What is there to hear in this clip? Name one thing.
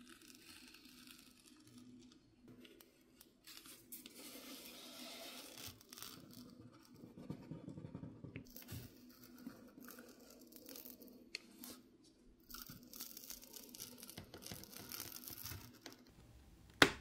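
A plastic pick scrapes and rubs along the edge of a phone.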